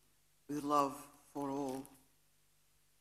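An elderly woman's voice is heard through a microphone, drawn out and calm.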